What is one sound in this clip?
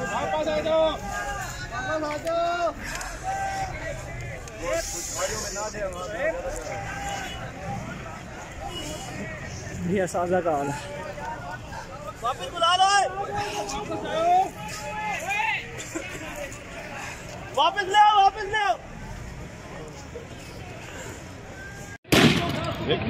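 A crowd of people shouts and chants outdoors.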